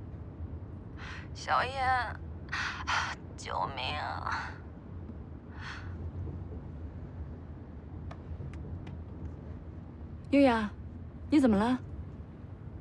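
A young woman talks calmly on a phone close by.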